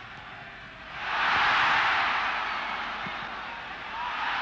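A large stadium crowd suddenly roars and then settles.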